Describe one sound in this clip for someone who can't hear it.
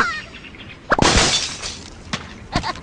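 A wooden structure crashes and shatters.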